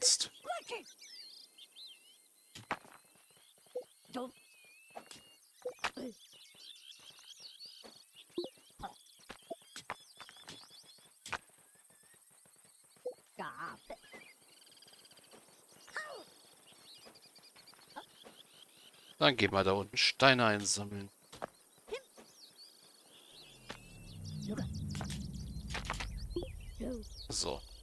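Small picks tap and chip at rock in quick, scattered knocks.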